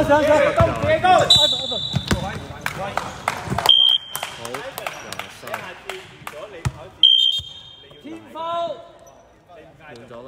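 Young men shout and call out in a large echoing gym.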